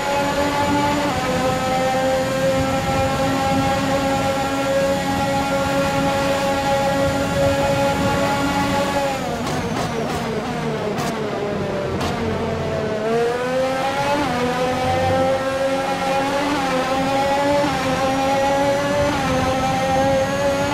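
A racing car engine screams at high revs, drops sharply in pitch while braking, then climbs again as it accelerates.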